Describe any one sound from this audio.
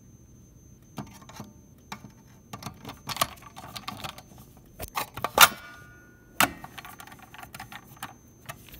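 A screwdriver scrapes and clicks against a metal box.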